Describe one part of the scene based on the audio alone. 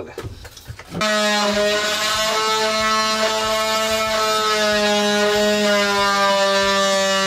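A cordless drill runs.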